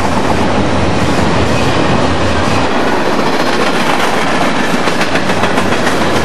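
Steel wheels clack over rail joints as a freight train passes.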